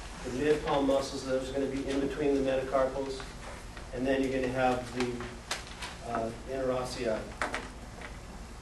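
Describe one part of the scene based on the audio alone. A man speaks calmly with pauses.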